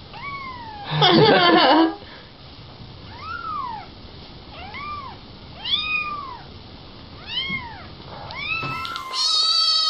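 A tiny kitten mews with short, high, thin cries.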